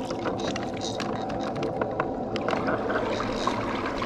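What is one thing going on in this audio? A fishing lure plops into the water.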